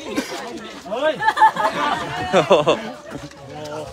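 A man laughs up close.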